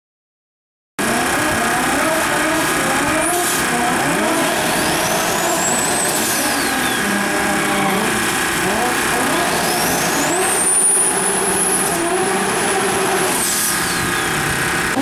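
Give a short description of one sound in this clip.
Car tyres screech as they spin on the track.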